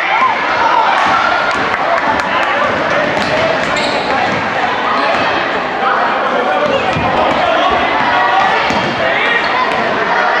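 Sneakers squeak on the hardwood floor.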